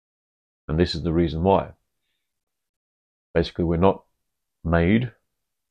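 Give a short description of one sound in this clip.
A middle-aged man speaks calmly and close to a microphone, in short bursts.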